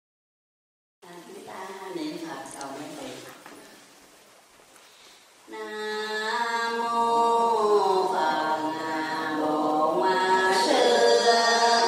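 An elderly woman speaks slowly and calmly into a microphone.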